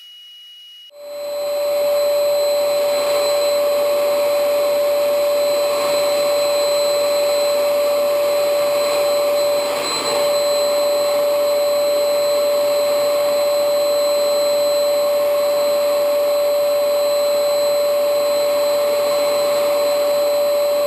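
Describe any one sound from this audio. A paint spray machine hums with a steady high whine.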